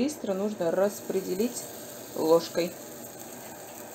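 Thick batter plops into a frying pan.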